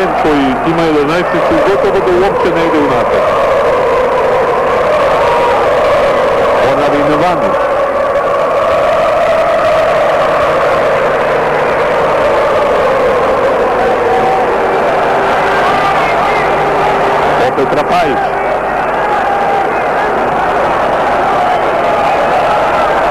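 A large crowd chants and sings loudly in an open stadium.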